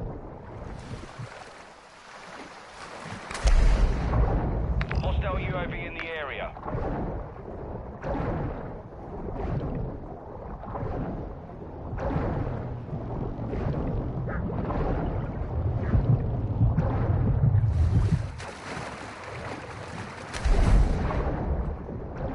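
Water splashes at the surface as a swimmer breaks through.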